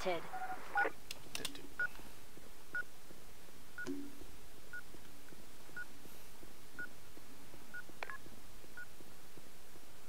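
A bomb beeps at a steady, regular pace.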